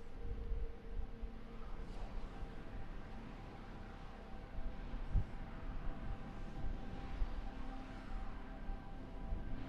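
A spaceship engine hums steadily with a low rumble.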